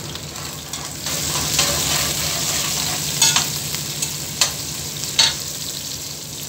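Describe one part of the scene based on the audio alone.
A spatula scrapes and stirs onions in a pot.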